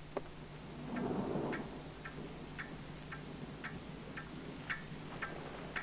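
A pendulum clock ticks steadily.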